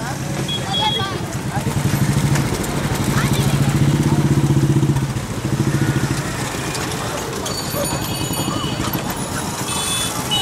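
A small motor engine putters steadily close by.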